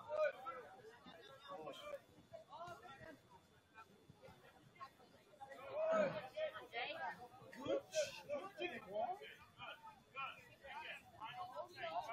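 Young male players shout to each other across an open field, heard from a distance.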